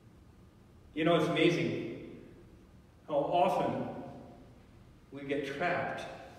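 An elderly man speaks through a microphone and loudspeakers in a large echoing hall.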